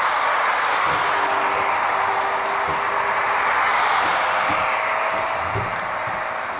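A tram's wheels squeal faintly on the rails.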